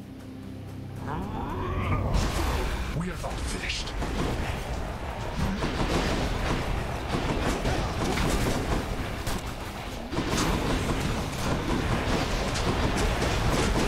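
Slashes, blasts and magic bursts crash in a fast, loud fight.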